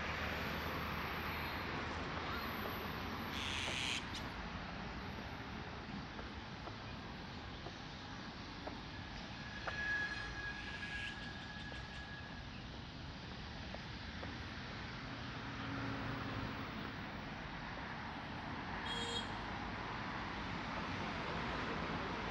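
Traffic hums steadily along a nearby road, outdoors.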